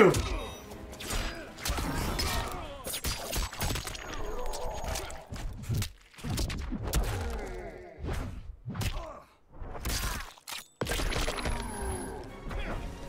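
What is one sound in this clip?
Heavy blows land with wet, crunching thuds.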